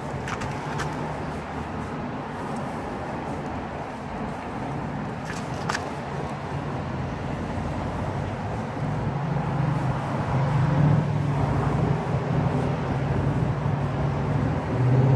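A metal pointing tool scrapes wet mortar into brick joints.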